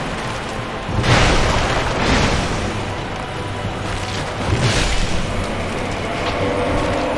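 Heavy weapons swing and strike in a fight.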